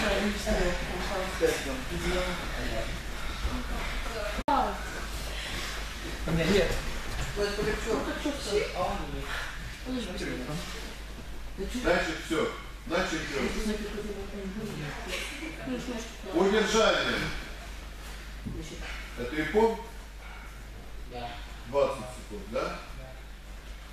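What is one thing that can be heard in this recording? Bodies thud and shuffle on gym mats.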